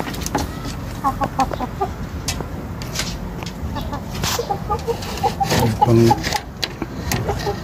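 Chickens cluck.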